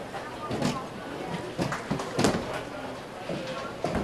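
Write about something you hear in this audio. A bowling ball rumbles and knocks as it rolls back up the return track.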